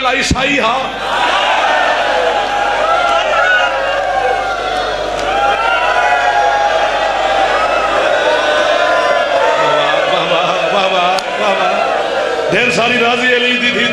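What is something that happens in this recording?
A crowd of men cry out and lament together.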